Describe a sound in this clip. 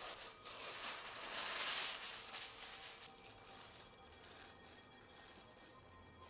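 Tissue paper rustles and crinkles.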